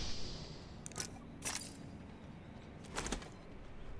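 Item pickups click softly.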